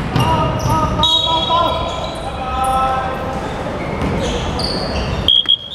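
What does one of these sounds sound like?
Young men call out to each other across the court.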